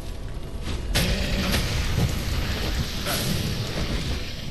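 A fiery blast bursts loudly and roars.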